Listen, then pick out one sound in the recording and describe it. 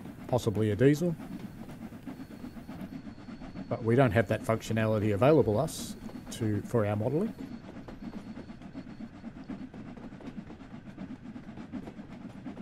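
A steam train rumbles steadily along the track.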